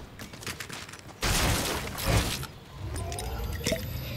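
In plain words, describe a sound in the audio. Building panels snap into place with sharp clicks.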